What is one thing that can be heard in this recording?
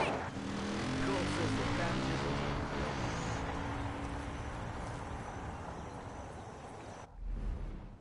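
A quad bike engine roars close by, then fades as the bike drives away.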